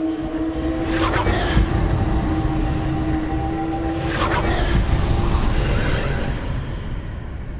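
A magical blast crackles and whooshes.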